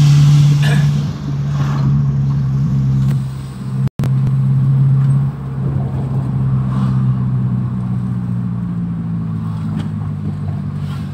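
A bus engine drones steadily up close.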